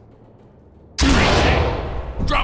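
A stun grenade goes off with a loud bang close by.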